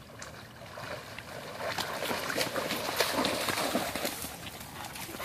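A dog splashes noisily out of the water.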